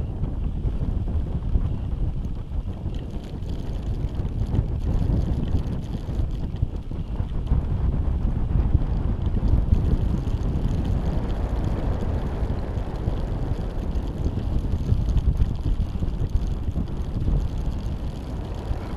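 A parachute flaps in the wind.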